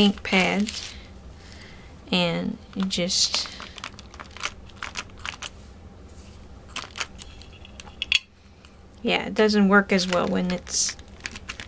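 Paper rustles and crinkles under hands.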